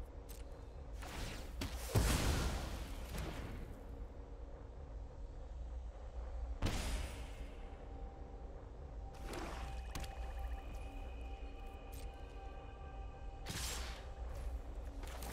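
Soft magical whooshes and chimes sound as cards are played.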